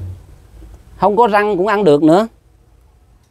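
An elderly man speaks close to a microphone, with a rising, sing-song voice.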